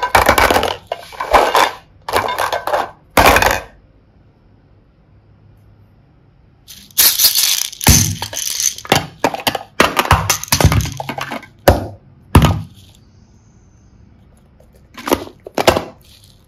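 Plastic toys clatter and knock together as a hand picks them up.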